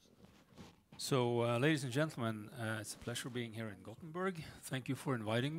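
A middle-aged man speaks calmly through a headset microphone.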